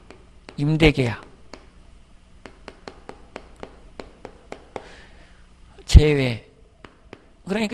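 A pen taps and scratches against a board.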